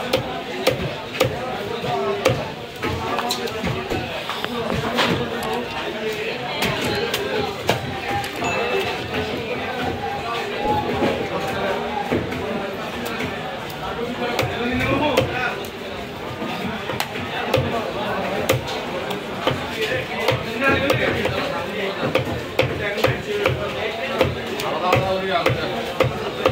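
A knife chops through fish on a wooden block with sharp thuds.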